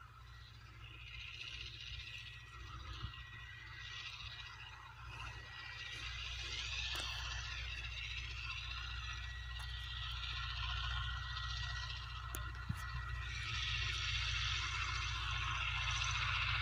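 A tractor engine drones in the distance.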